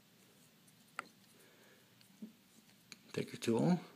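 A metal pocket tool clicks as a hand opens and folds it.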